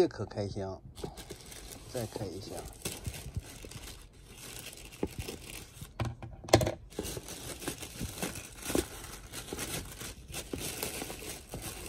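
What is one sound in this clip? Plastic wrap crinkles and rustles.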